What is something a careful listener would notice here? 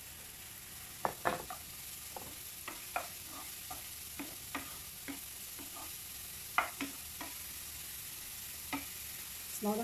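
A wooden spoon scrapes and knocks against a frying pan.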